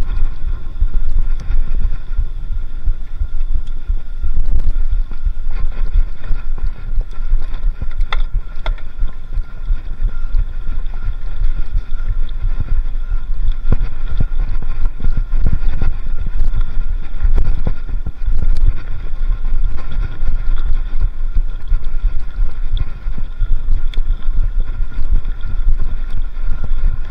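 Wind rumbles steadily against the microphone of a moving bicycle.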